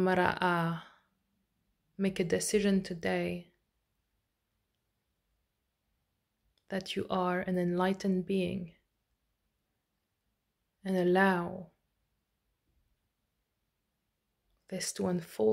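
A young woman speaks calmly and slowly close to a microphone, with pauses.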